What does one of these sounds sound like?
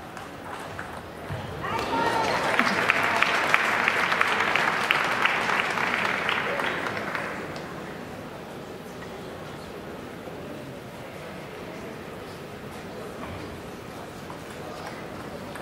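A table tennis ball clicks back and forth between paddles and table.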